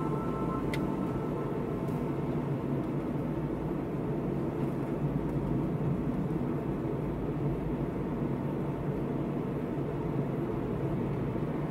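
A car's engine and tyres rumble steadily from inside the car.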